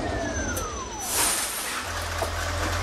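Bus doors open with a sharp hiss of air.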